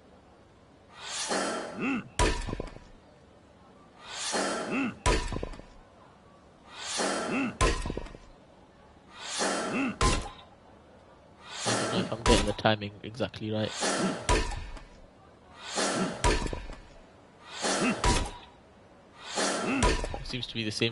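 A man grunts with effort as he swings an axe.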